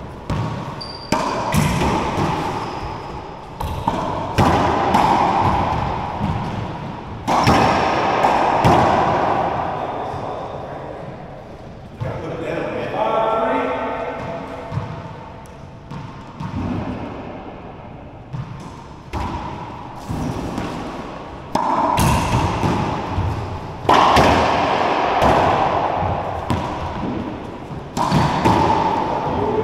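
Racquets strike a ball with sharp cracks.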